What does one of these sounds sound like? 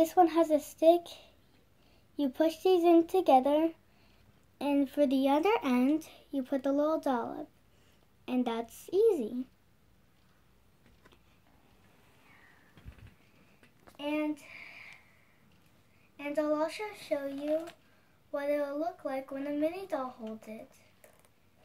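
A young girl talks close to the microphone.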